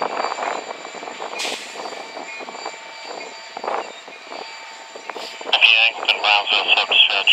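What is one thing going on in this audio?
A freight train rumbles and clatters along the tracks.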